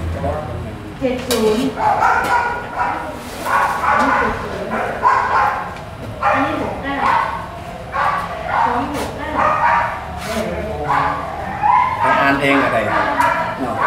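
A man chants steadily in a low voice close by.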